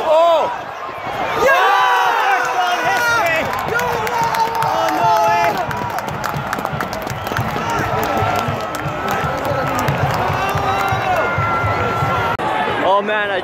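A crowd of fans cheers and shouts in an open stadium.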